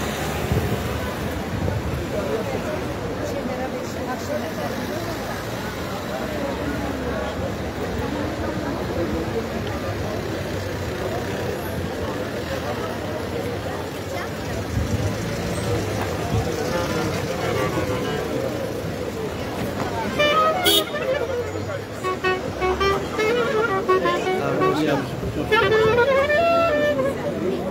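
A large crowd talks and murmurs outdoors.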